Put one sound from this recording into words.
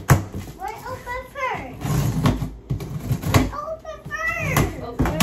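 Cardboard thumps and rustles as a box is handled.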